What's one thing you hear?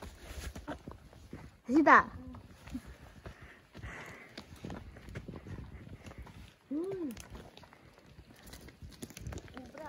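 Footsteps scrape and crunch on loose dirt.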